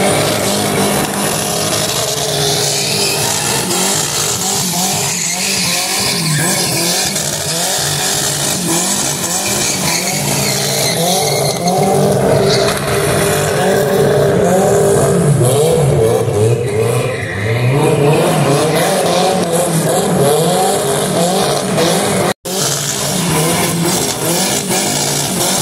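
A car engine revs hard.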